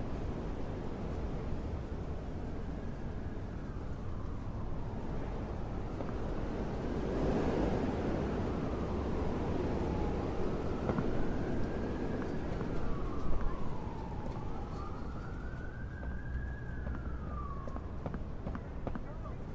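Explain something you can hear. A small vehicle engine hums and revs up and down.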